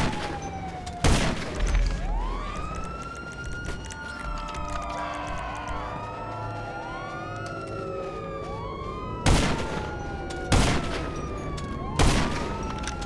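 A rifle fires single sharp shots.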